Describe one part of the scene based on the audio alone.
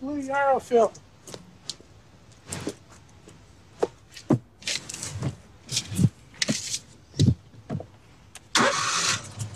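Clicks and knocks sound as a man climbs into a vehicle seat.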